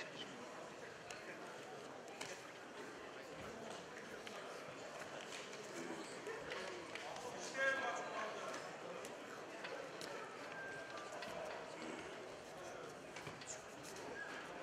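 Feet scuff and thump on a padded mat.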